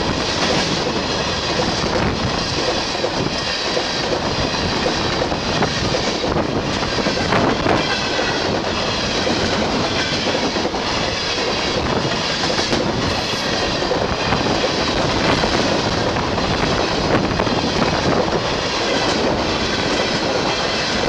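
Freight car wheels clatter over rail joints.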